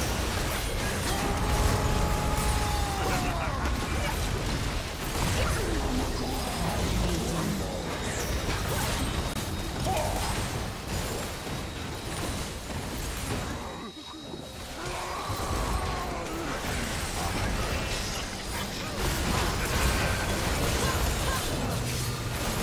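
Spell effects crackle and burst in a busy game fight.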